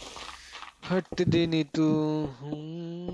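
A young man speaks close to a headset microphone.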